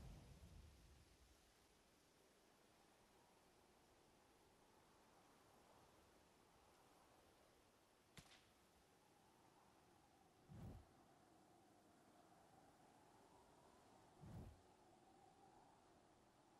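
Wind blows softly across open grass.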